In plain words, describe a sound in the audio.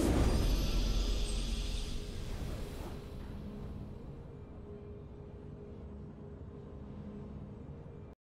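A triumphant victory fanfare plays and fades.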